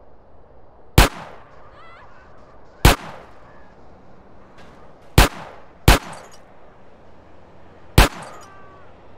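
A pistol fires single loud shots with a short ringing echo.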